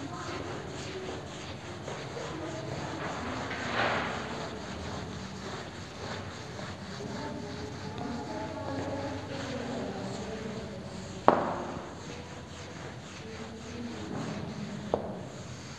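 A man wipes a chalkboard with a duster, rubbing and scraping.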